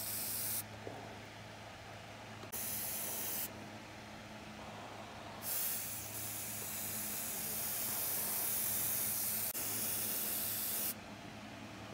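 An airbrush hisses in short bursts and one long burst of spray.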